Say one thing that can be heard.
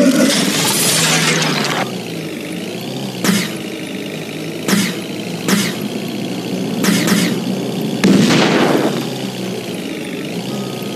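A motorcycle engine drones steadily at speed.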